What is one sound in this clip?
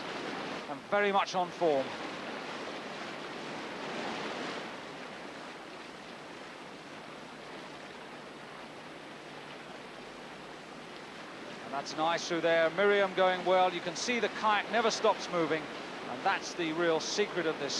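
White water rushes and churns.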